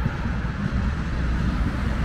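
A tram rolls by.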